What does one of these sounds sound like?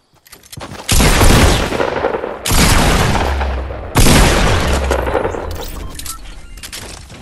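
Gunshots fire in loud, sharp bursts.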